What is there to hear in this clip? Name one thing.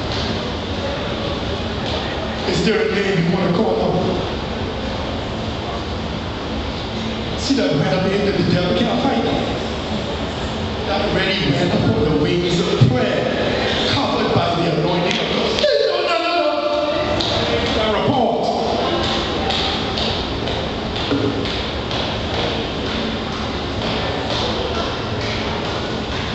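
A man preaches with animation through loudspeakers in a large echoing hall.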